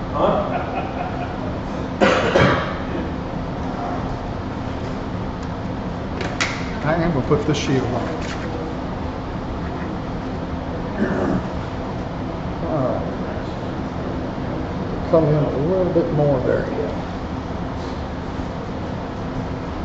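A wood lathe motor hums steadily as the workpiece spins.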